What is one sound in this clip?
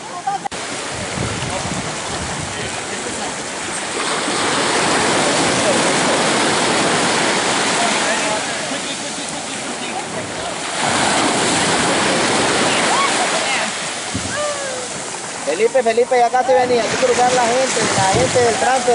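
People splash through shallow water.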